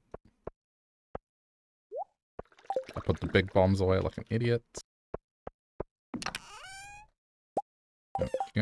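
Short game menu clicks sound now and then.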